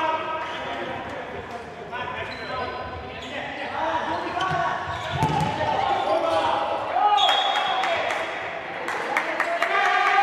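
A ball is kicked on a hard indoor court.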